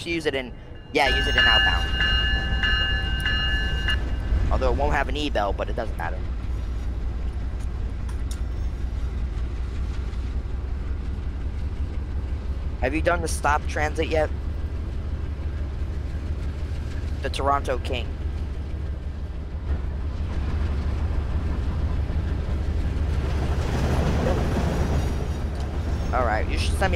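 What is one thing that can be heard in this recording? A locomotive rumbles low as a train runs along the track.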